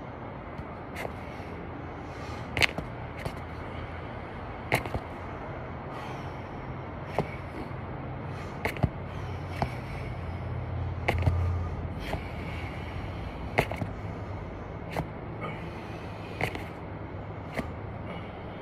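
Feet thump softly on the ground now and then.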